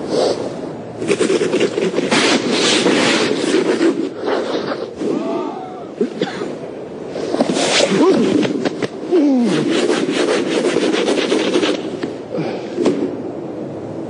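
A man scrapes and brushes snow off a car.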